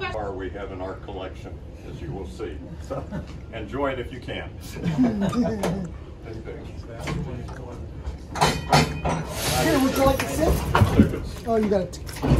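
An elderly man speaks with animation to a small group nearby.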